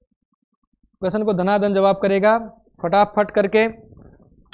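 A man speaks steadily, close to a microphone.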